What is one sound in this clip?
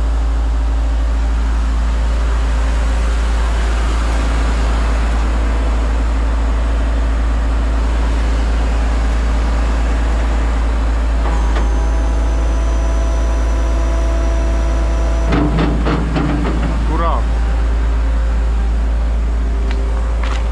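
A large truck engine idles close by with a steady low rumble.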